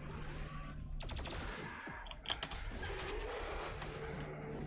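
Gunfire blasts from a game in quick bursts.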